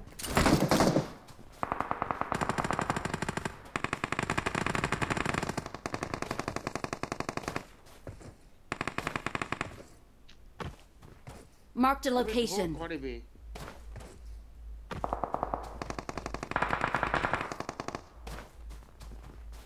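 Quick footsteps crunch through snow.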